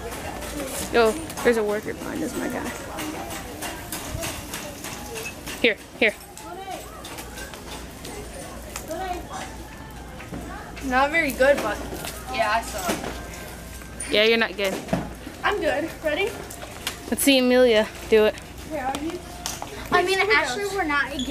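Young girls talk and laugh with animation close by.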